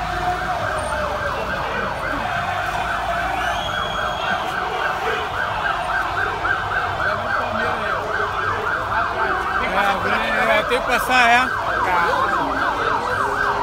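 A large crowd of men sings a rhythmic chant outdoors.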